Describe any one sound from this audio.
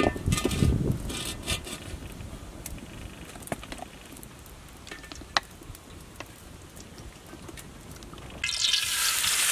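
A wood fire roars and crackles under a pan.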